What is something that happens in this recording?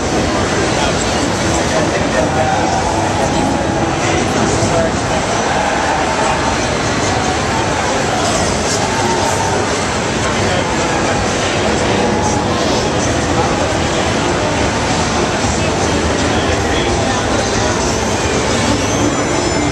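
A crowd murmurs and chatters loudly in a busy, echoing hall.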